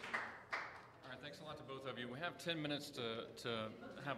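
A man speaks calmly through a microphone in a large echoing room.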